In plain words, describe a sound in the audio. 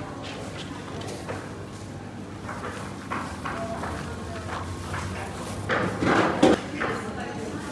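Hands pat and spread loose meat with soft rustling.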